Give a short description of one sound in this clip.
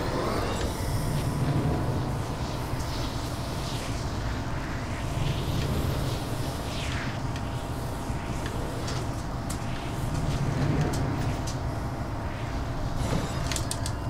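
Wind rushes past a glider descending through the air.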